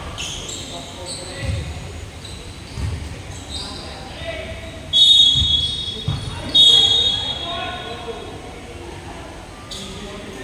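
Young people chatter and call out in the distance.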